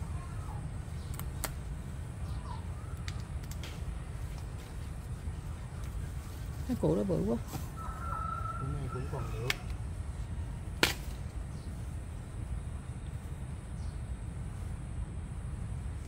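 Hands scrape and pull at loose soil.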